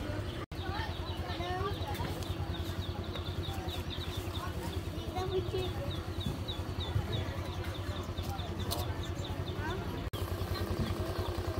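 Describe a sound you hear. A motorbike engine idles close by with a steady putter.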